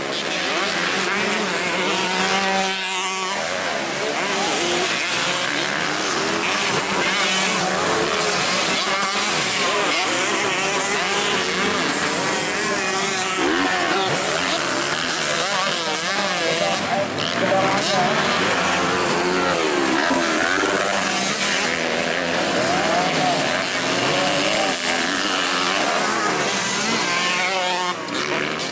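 Dirt bike engines rev hard as the bikes race around a dirt track.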